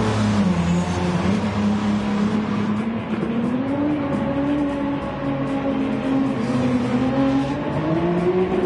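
A sports car engine roars steadily, its pitch rising and falling as the car shifts and accelerates through a corner.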